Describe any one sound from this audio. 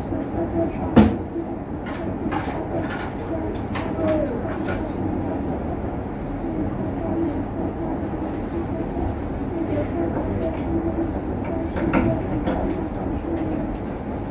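Objects knock softly on a wooden surface.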